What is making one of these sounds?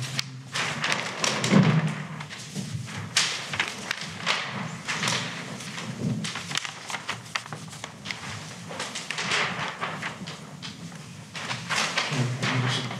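Large paper sheets rustle and crinkle.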